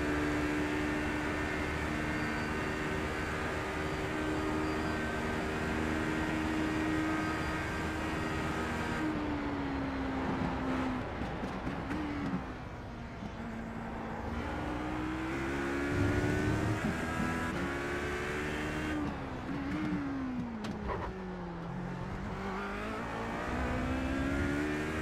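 A racing car engine roars at high revs, dropping in pitch under braking and rising again as it accelerates.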